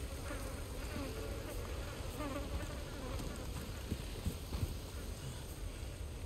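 Footsteps crunch over leaves and dirt.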